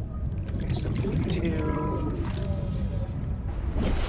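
Water splashes and bubbles as a swimmer surfaces.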